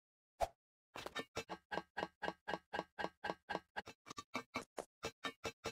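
Hands and feet clatter rhythmically on ladder rungs.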